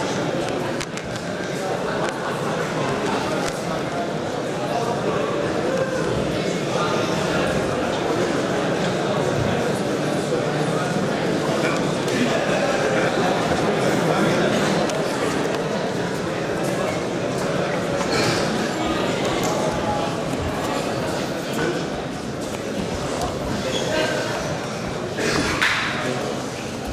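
A crowd murmurs and chatters steadily in a large echoing hall.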